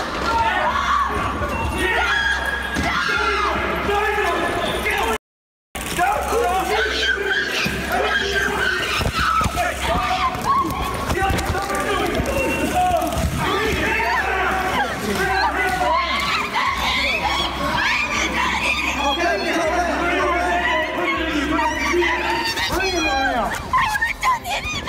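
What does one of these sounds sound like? A woman shouts and screams in panic nearby.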